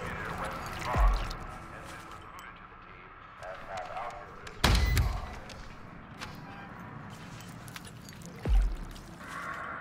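A heavy object thuds.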